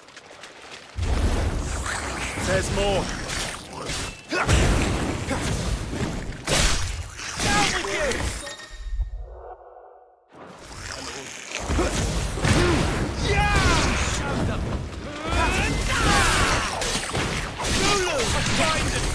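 Swords clash and slash in a fast fight.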